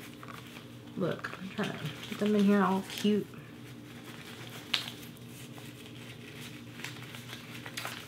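Plastic packaging crinkles in a young woman's hands.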